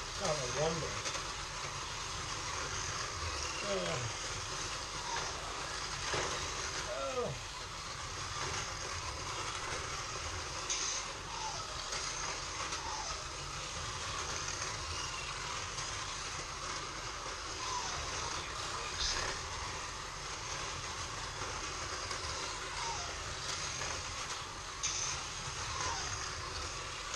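Small electric toy cars whir steadily around a track.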